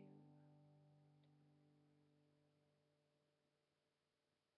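An acoustic guitar chord rings out and slowly fades away.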